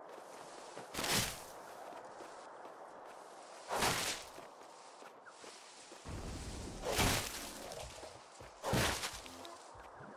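A blade swishes through the air in short, sharp whooshes.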